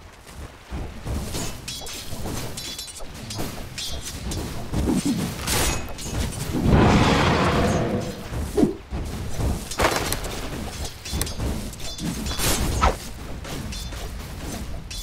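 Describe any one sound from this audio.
Spell effects and weapon hits crackle and burst in a video game battle.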